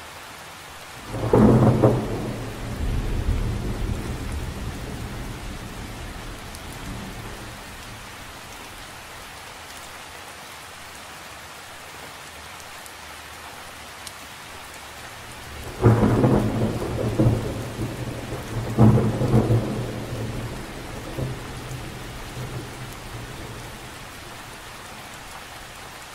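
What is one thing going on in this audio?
Rain patters steadily on the surface of a lake outdoors.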